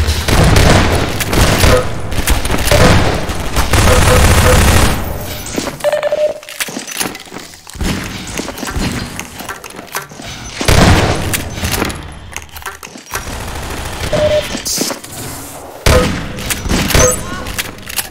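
A shotgun fires repeatedly with loud booming blasts.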